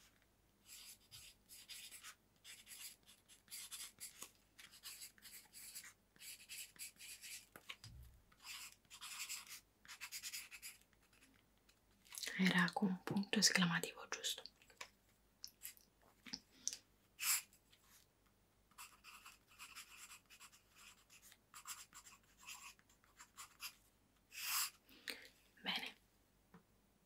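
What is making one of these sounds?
A pen scratches quickly on paper close by.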